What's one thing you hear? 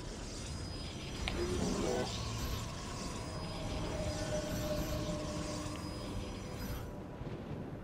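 Game battle effects zap and blast.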